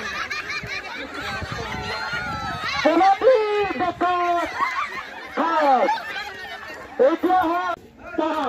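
Women shout and cheer excitedly close by, outdoors.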